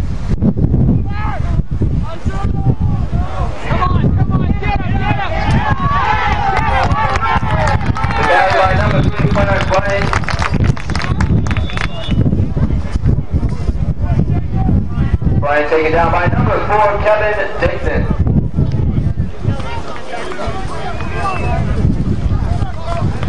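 A crowd of spectators cheers and shouts from nearby outdoors.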